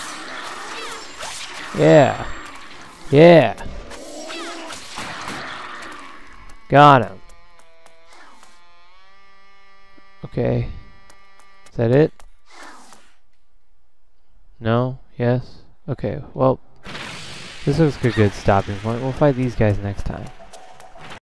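Blades slash and clash in quick strikes.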